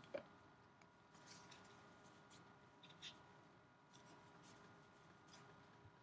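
Plastic wrap and cards rustle softly between gloved hands.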